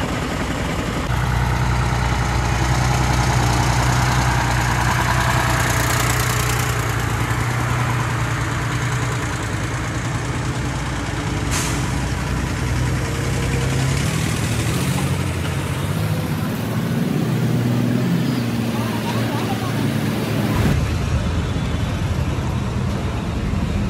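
Large tyres roll over a rough road.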